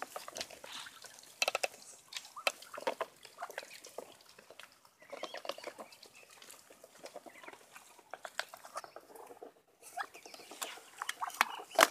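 Ducks hiss and chirp softly close by.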